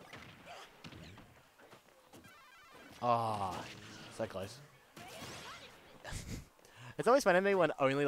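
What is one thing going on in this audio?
Punches, hits and game effects clash in a fast video game fight.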